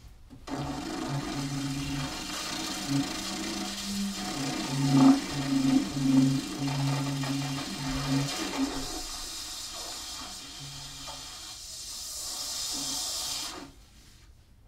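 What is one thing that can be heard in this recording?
An alto saxophone plays solo in broken notes, with a breathy hiss.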